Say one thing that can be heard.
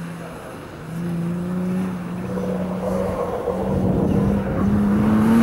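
Tyres squeal on asphalt.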